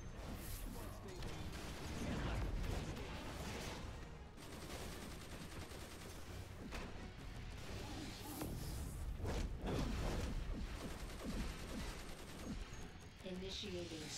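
Heavy hits thud against metal machines.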